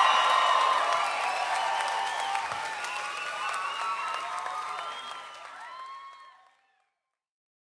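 A large crowd cheers and screams loudly in a big echoing hall, then fades away.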